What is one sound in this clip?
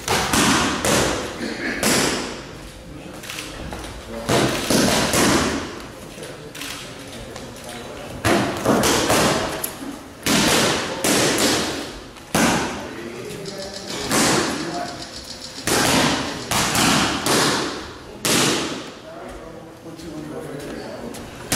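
Boxing gloves smack hard against focus mitts in quick bursts.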